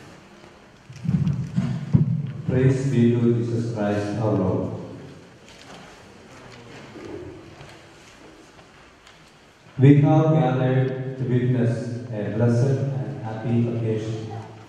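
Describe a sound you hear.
A man chants into a microphone, heard through loudspeakers in a large echoing hall.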